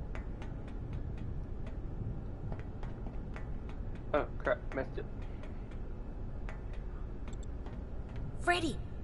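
Footsteps tap steadily on a metal walkway.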